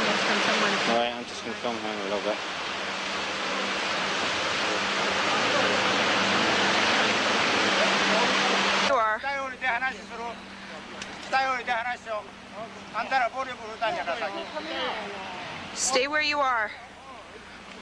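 A man speaks outdoors.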